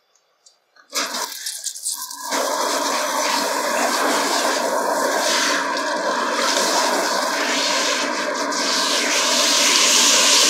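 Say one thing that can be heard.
A handheld shower head sprays water over hair.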